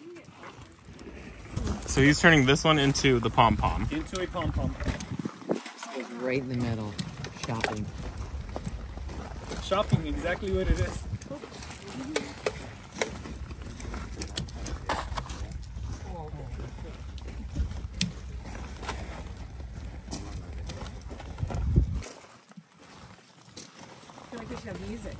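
Foliage rustles as a man handles a small shrub.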